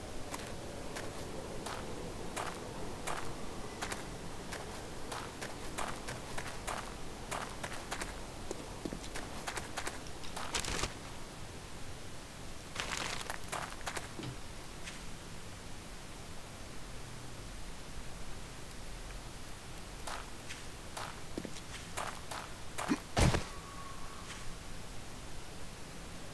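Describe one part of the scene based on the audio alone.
Footsteps crunch over loose stones.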